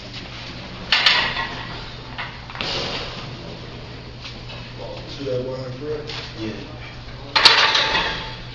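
A barbell clanks against a metal rack.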